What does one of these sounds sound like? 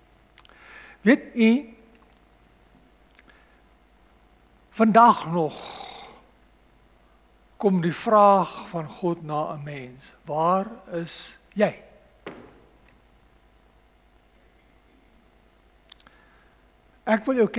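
A middle-aged man preaches slowly through a microphone, with long pauses.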